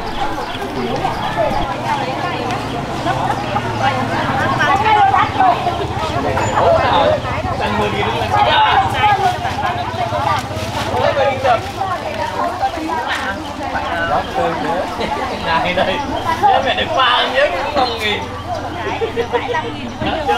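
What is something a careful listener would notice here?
Middle-aged women talk with animation close by.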